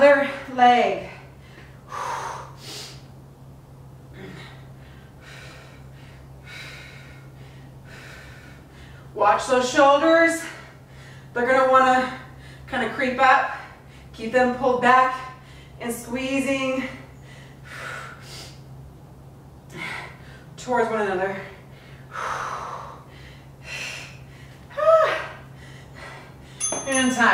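A young woman speaks calmly and encouragingly, close to a microphone.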